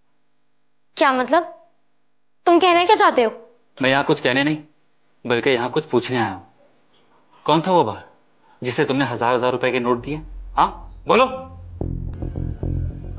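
A young woman speaks with agitation, her voice rising.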